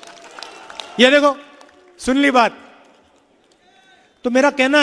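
A man speaks loudly and with emphasis into a microphone, heard through loudspeakers.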